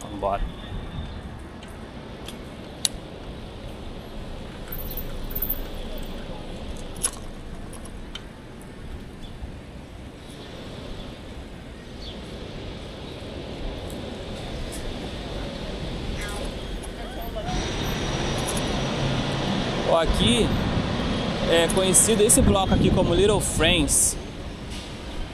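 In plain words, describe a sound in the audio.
Wind rumbles against the microphone as a bicycle rolls along a street.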